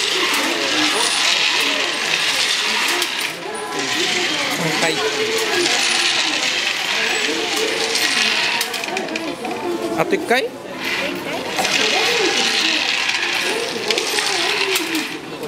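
A crowd of people chatters all around, busy and noisy.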